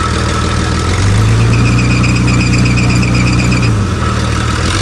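A pickup truck engine revs up and settles back down.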